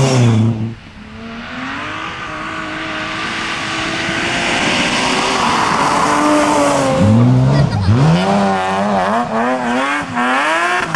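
A second rally car engine approaches, revs hard and roars past.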